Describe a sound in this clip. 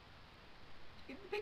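A young girl speaks briefly close to a microphone.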